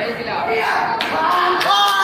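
Kicks thud against body pads.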